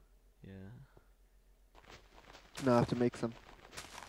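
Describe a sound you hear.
A shovel digs into dirt with short crunching thuds.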